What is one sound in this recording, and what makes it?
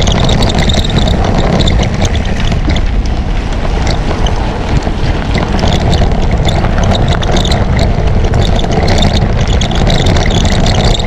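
Bicycle tyres crunch over loose gravel.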